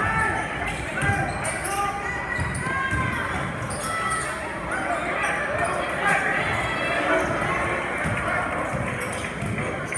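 A basketball thumps as it bounces on the court.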